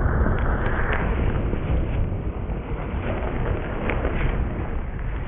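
A body slides across a wet plastic sheet with a steady rushing, squeaking hiss.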